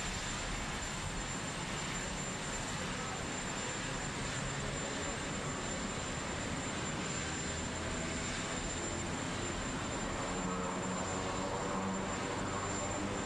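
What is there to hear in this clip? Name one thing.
A helicopter engine whines and its rotor whooshes steadily close by.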